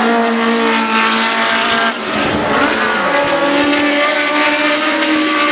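Racing car engines roar and whine loudly as the cars speed past.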